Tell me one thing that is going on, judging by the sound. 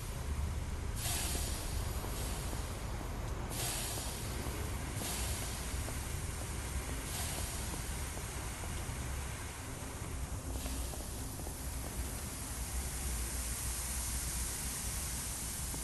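Water sprays from a fire hose with a loud, steady hiss.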